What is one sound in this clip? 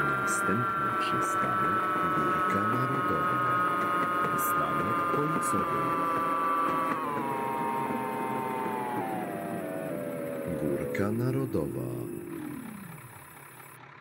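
A tram motor whines steadily and winds down as the tram slows to a stop.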